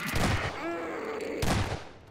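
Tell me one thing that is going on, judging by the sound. A creature shrieks in pain.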